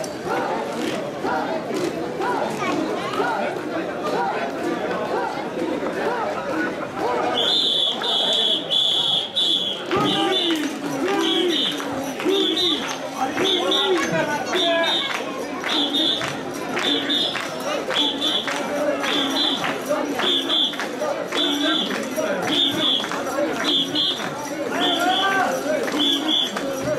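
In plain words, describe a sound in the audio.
A crowd of men chants loudly in rhythm outdoors.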